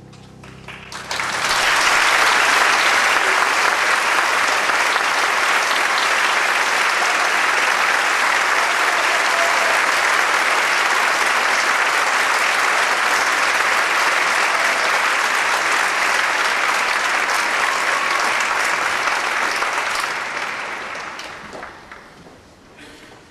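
An audience applauds loudly, then the applause fades.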